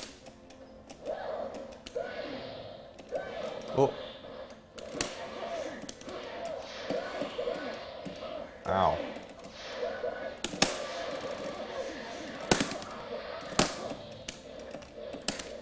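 Arcade buttons click rapidly under a player's fingers.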